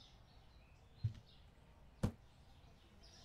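A cardboard box thuds onto a wooden floor.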